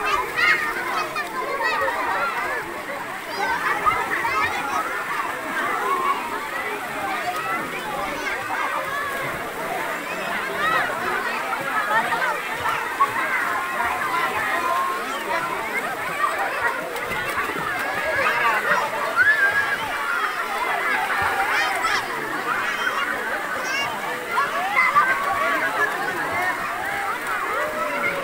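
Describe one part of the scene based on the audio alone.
A crowd of people chatter at the same time.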